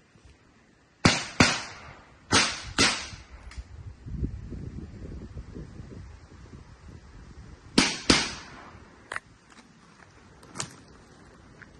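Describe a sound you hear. Gunshots crack loudly nearby and echo through the woods.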